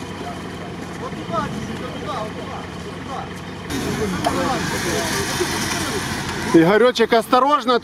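Several men talk outdoors in a crowd.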